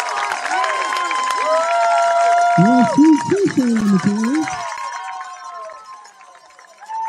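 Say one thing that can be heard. A crowd cheers and shouts outdoors, then quiets down.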